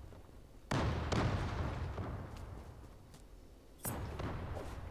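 A sniper rifle fires loud, echoing shots.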